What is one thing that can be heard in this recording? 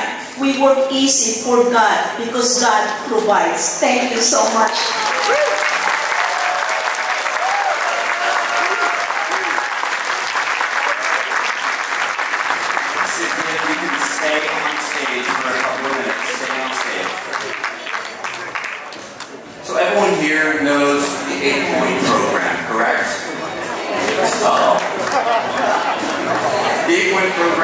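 A woman speaks with emotion into a microphone over loudspeakers in a large hall.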